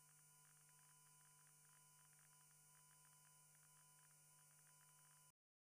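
A woman reads out the news calmly into a microphone.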